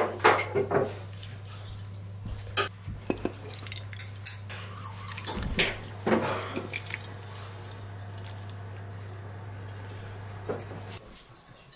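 A ladle clinks against a ceramic bowl.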